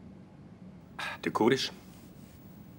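A man answers briefly in a low voice.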